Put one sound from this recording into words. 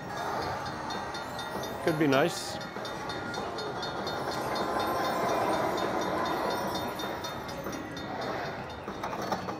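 A slot machine plays a lively electronic tune.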